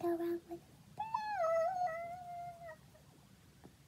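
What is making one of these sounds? A young girl sings a short drawn-out note.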